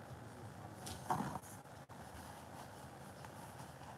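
A rubber glove rustles and squeaks as a hand moves.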